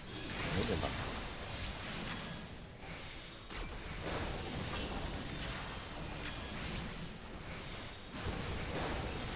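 Magical spell effects whoosh and burst again and again.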